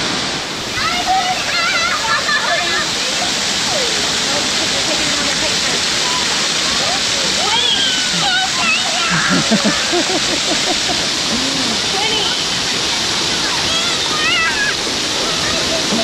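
Young children shout and squeal playfully.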